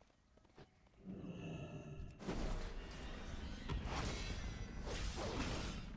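Video game combat sound effects clash and crackle.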